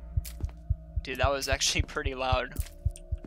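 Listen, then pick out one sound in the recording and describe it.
A young man speaks briefly and with animation into a close microphone.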